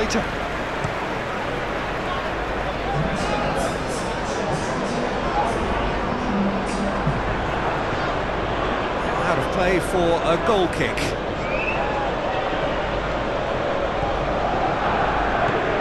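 A stadium crowd roars and murmurs steadily in a large open space.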